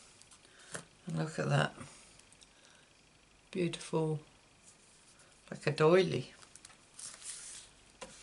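Thin paper rustles softly as hands handle it.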